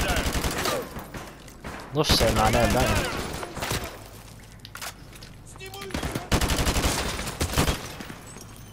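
An automatic rifle fires in rapid bursts in an echoing hall.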